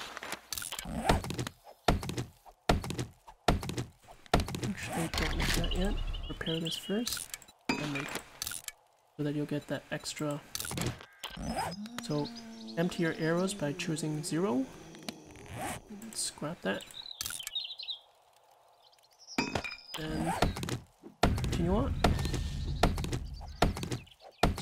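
An axe chops into a tree trunk with sharp, repeated knocks.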